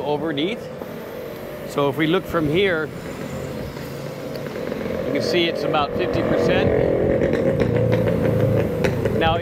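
Distant traffic hums along a street outdoors.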